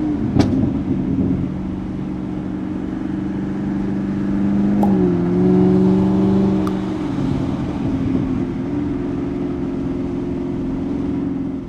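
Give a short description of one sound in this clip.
A car engine hums steadily from inside the car, its pitch shifting now and then.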